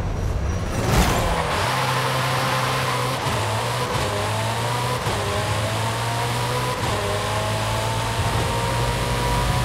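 A twin-turbo V8 supercar accelerates hard, shifting up through the gears.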